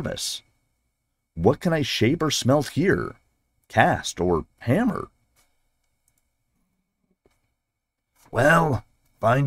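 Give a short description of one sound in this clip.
A man reads aloud expressively, close to a microphone.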